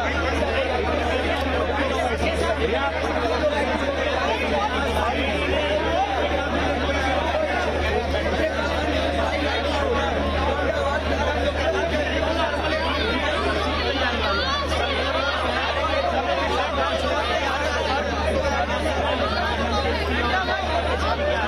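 A large crowd of young men shouts and chatters loudly close by.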